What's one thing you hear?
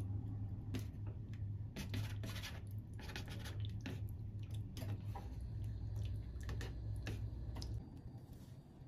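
Chopsticks clink and stir noodles in a pot.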